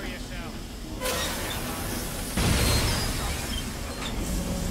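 Gas hisses loudly as it bursts from a valve.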